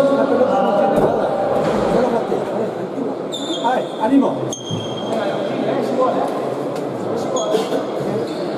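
A ball smacks hard against a wall.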